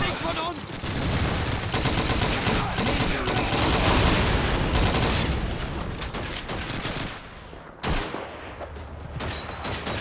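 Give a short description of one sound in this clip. Explosions rumble in a noisy battle.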